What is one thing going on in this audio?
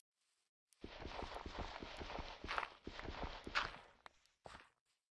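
Crunching blows dig steadily into a block of earth.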